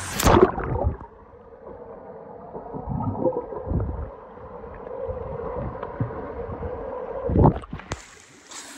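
Muffled underwater sounds of bubbles and water.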